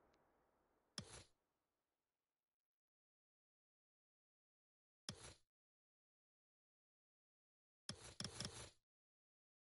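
Short interface beeps and clicks sound in a game menu.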